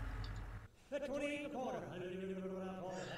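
An auctioneer speaks rapidly through a loudspeaker.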